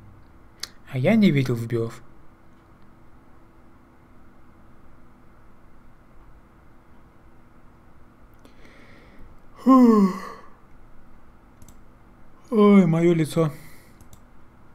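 A young man speaks in short bursts with animation into a nearby microphone.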